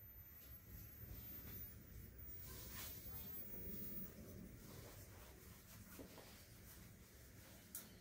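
Silk cloth rustles and snaps softly as it is folded.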